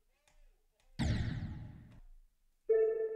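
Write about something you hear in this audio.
A loud game crash sound bursts out and fades.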